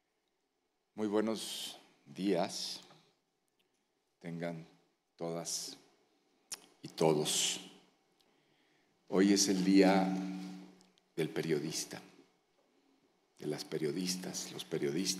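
A man speaks calmly through a microphone and loudspeakers in an echoing hall.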